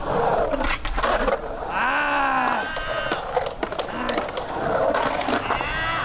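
A skateboard clacks as it lands on concrete.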